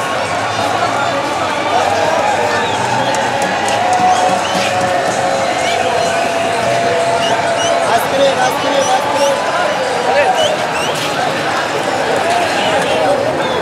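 A large stadium crowd chants and cheers loudly all around.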